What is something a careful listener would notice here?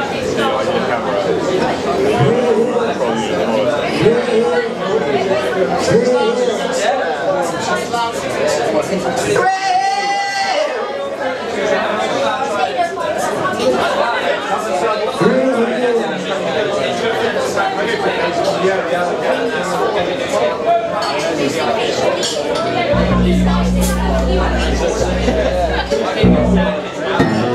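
An electric guitar plays loudly through an amplifier.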